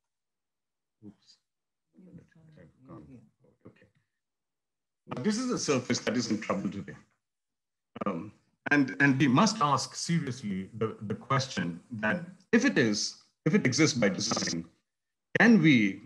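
An elderly man speaks calmly through an online call.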